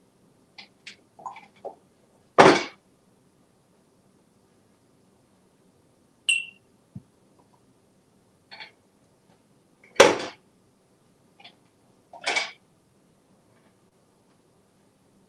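Soft toy balls bump and rustle as a parrot handles them.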